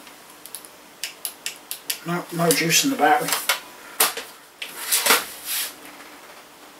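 Plastic laptop cases knock and clatter as they are lifted and stacked.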